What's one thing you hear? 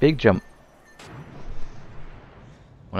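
A magic spell bursts with a rushing whoosh.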